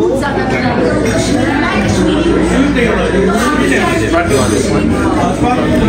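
Men chat at a table nearby.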